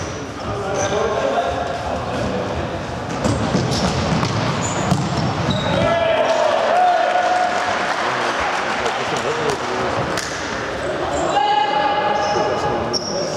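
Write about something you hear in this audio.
Young players' shoes squeak and patter on a hard floor in a large echoing hall.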